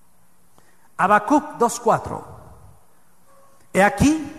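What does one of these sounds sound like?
A middle-aged man speaks with emphasis into a microphone, heard through loudspeakers in a reverberant hall.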